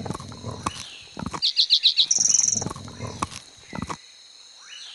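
A tiger growls and crunches while tearing at its prey.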